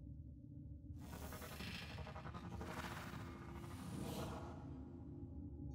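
An energy blade hums and whooshes with a bright rushing hiss.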